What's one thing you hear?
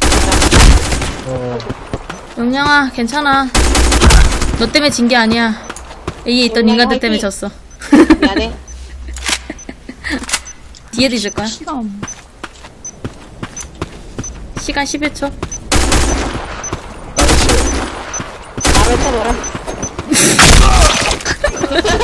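Gunshots ring out in short, loud bursts.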